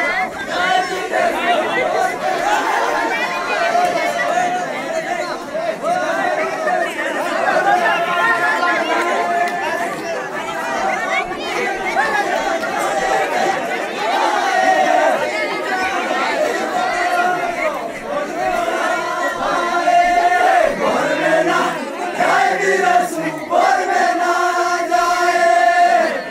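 A group of men sings together loudly outdoors.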